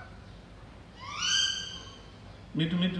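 A parrot gives a loud rising whistle.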